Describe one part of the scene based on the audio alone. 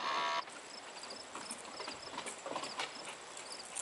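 A dog runs across grass outdoors.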